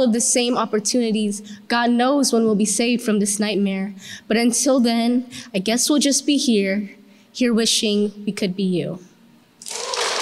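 A young girl speaks calmly into a microphone.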